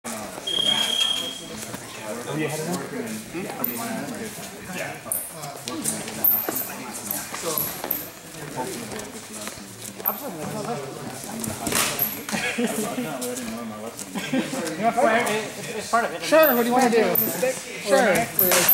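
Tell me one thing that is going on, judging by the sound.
Feet shuffle and stamp on a mat floor.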